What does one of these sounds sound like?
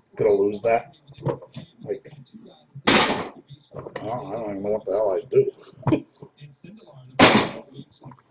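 Small cardboard boxes are set down on a table with soft knocks.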